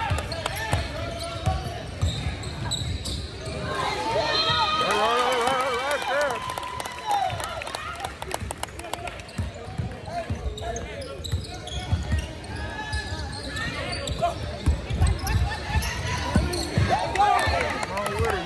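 A basketball thumps as it bounces on a wooden floor.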